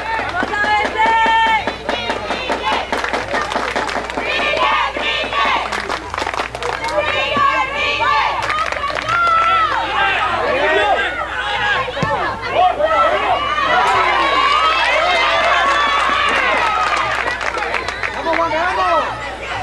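Children shout and cheer loudly outdoors.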